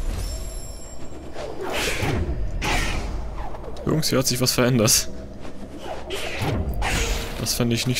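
Soft magical whooshes and sparkling chimes sound in a game.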